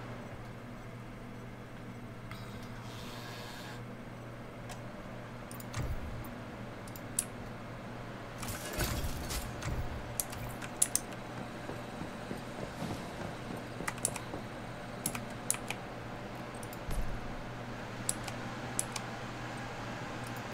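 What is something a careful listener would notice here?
Short clicks sound as menu items are selected.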